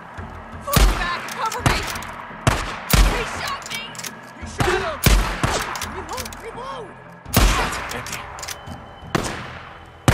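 Gunshots ring out one after another, echoing outdoors.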